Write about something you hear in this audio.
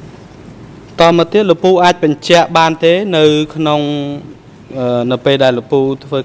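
A man speaks formally and steadily through a microphone.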